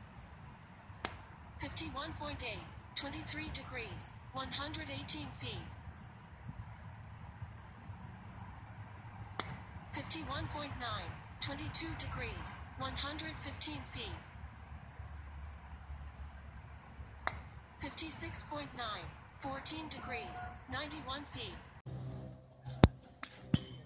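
A baseball smacks into a catcher's glove.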